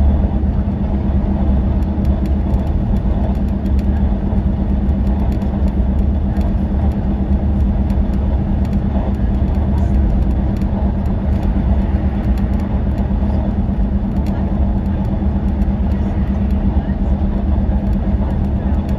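Tyres roar steadily on a motorway.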